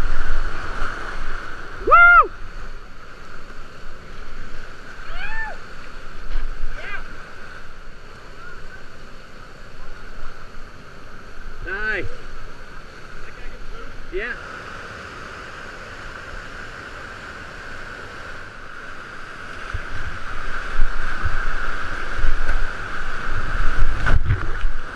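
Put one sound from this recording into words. Whitewater rushes and churns loudly.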